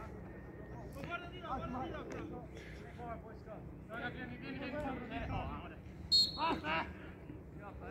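Young male players shout to each other across an open outdoor field.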